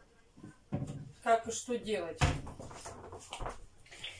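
A cupboard door bangs shut.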